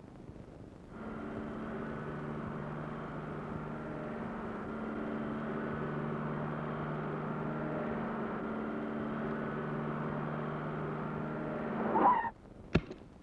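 A car engine hums steadily as a car drives slowly by.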